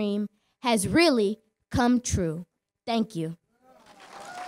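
A girl speaks calmly through a microphone.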